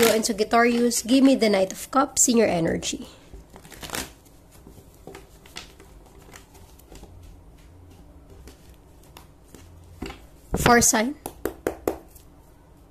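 Playing cards riffle and slap together as they are shuffled.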